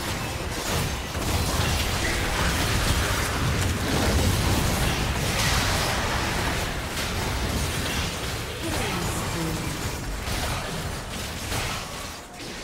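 Spell blasts, hits and explosions crackle and boom in a busy fight between game characters.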